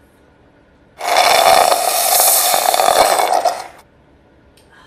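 A young woman slurps a drink loudly through a straw.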